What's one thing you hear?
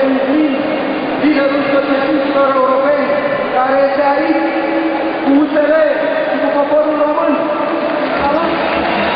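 A man speaks loudly and forcefully into a microphone, echoing through a large hall.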